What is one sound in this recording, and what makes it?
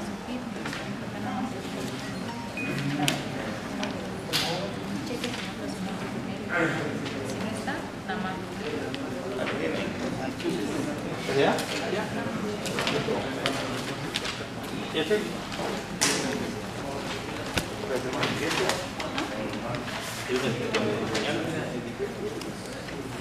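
Several adults talk at once in a room that echoes a little.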